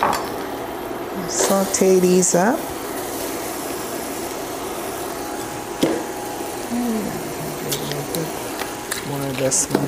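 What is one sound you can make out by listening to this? Onion slices sizzle in a hot pan.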